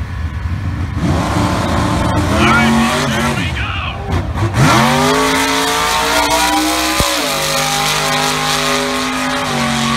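A car engine roars loudly as a drag car launches down the strip.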